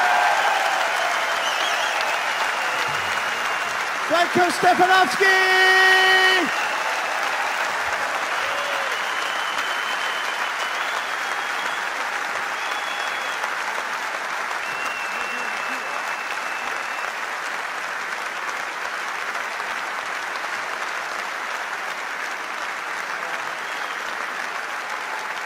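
A large crowd cheers and applauds throughout a huge echoing hall.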